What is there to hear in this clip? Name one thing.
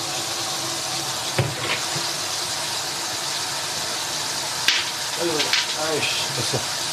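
Tap water runs steadily into a sink.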